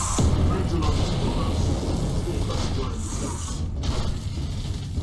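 Electric energy crackles and bursts loudly.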